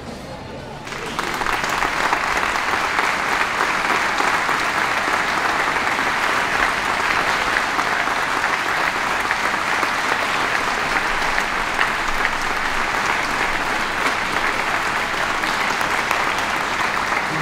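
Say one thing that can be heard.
A large crowd applauds and cheers loudly and steadily.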